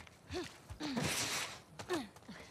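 A body clambers through a window frame with a rustling thud.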